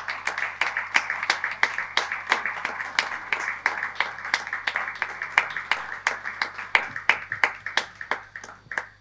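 An audience claps steadily in a room.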